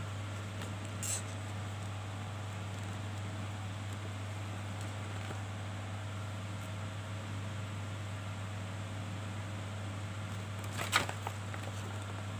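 Paper rustles and crinkles as a folded sheet is handled.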